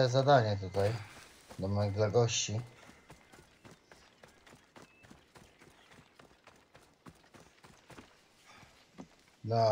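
Footsteps run on a dirt path.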